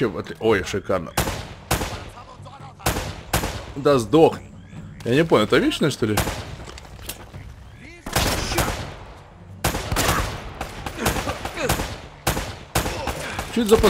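A pistol fires sharp shots in quick bursts.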